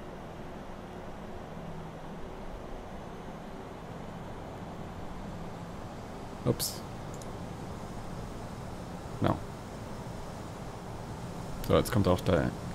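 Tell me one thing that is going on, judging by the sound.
A jet engine drones steadily in a cockpit.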